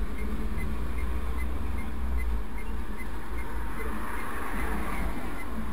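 Cars and a truck drive past at a distance.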